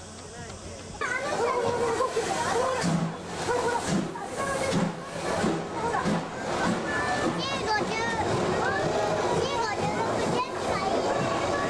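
A steam locomotive hisses quietly while standing.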